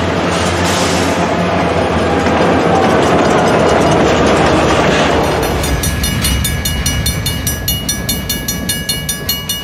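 Freight cars clatter and squeal over the rails.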